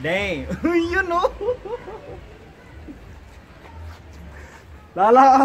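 A young man shouts and laughs excitedly close by.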